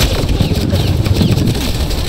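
An electric blast crackles and zaps.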